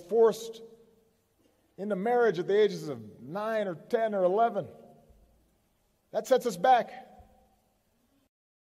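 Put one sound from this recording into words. A man speaks slowly and firmly into a microphone, with pauses.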